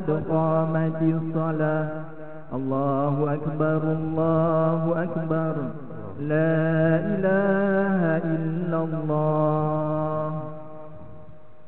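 A man chants in a melodic, drawn-out voice through a loudspeaker in an echoing room.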